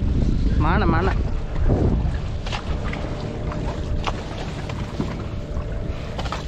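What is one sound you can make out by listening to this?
Fishing nets rustle and slap as they are hauled in.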